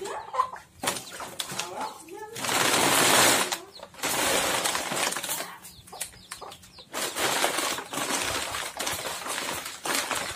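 Chicks peep softly.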